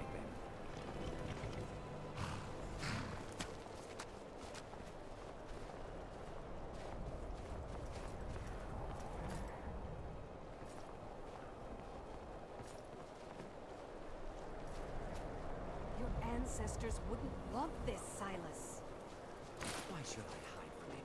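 Footsteps in heavy armour crunch on snowy ground.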